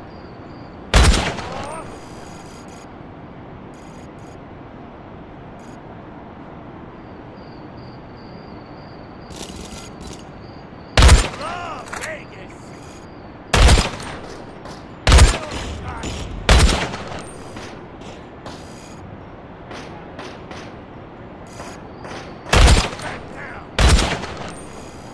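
A sniper rifle fires single sharp shots.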